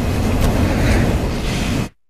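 A pistol fires loudly.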